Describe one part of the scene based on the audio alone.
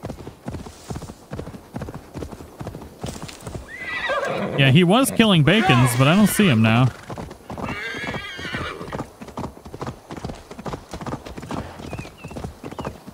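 A horse's hooves thud steadily as it trots.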